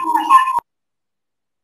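A young boy speaks briefly, close by.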